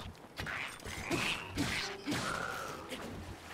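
A blow lands with a sharp burst in a game.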